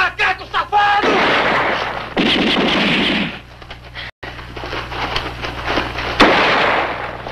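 Rifle shots crack and bang outdoors.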